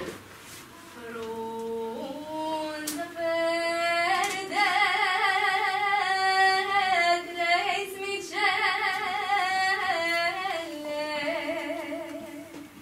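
A choir of young women sings together in a hall.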